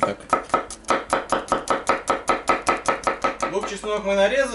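A knife chops quickly and rhythmically on a wooden board.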